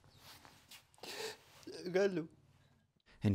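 A young man speaks in a shaky, tearful voice up close.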